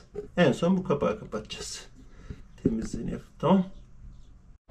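A man talks quietly up close.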